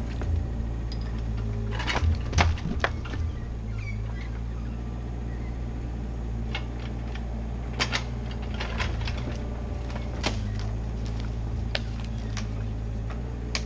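Logs knock and clunk as a digger grapple moves them.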